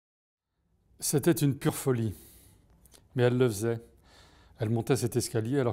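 A middle-aged man reads aloud calmly and close by.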